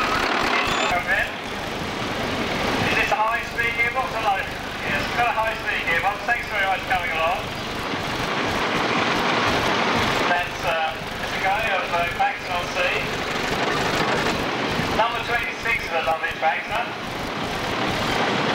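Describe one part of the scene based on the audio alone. A tractor engine idles and putters.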